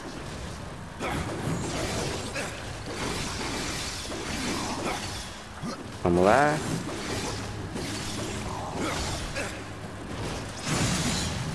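Blades swish and strike in a fast fight.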